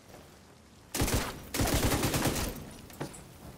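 A burst of gunfire rattles loudly.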